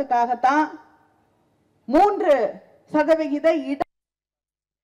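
A woman speaks forcefully into a microphone, heard through loudspeakers.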